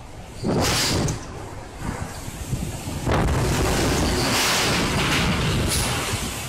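Strong wind roars in loud gusts outdoors.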